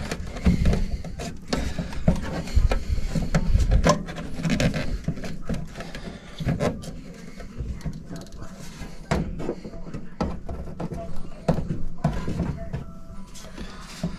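Plastic and metal parts knock and rattle as hands handle them close by.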